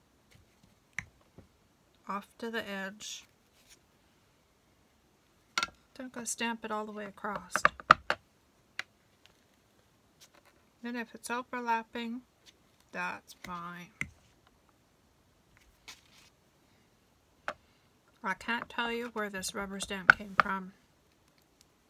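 A plastic block taps and clicks against a table.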